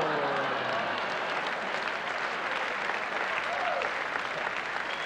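A large audience laughs and applauds.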